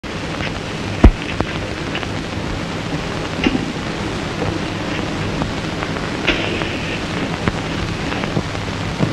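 Cloth rustles as a person handles laundry.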